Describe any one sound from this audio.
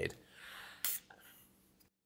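A wine preserver hisses briefly.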